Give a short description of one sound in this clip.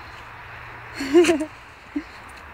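A shepherd dog gives a short yelp.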